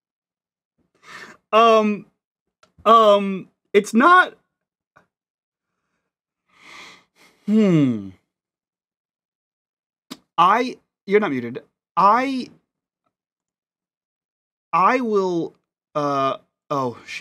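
A man speaks with animation over an online call, with pauses between phrases.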